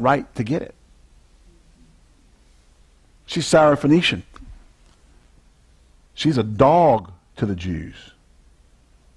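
A man speaks with emphasis in short phrases, close to a microphone.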